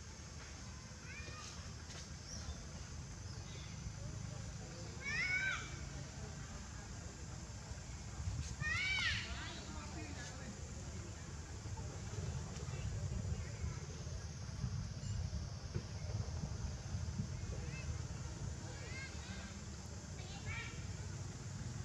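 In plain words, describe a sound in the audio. A baby monkey squeaks shrilly now and then.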